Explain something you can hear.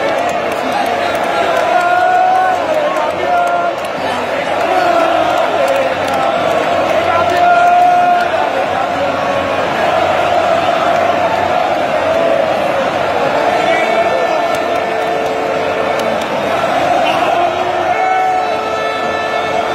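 A large stadium crowd cheers and chants loudly all around.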